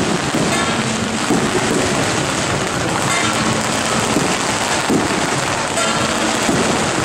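A crowd chatters and bustles loudly outdoors.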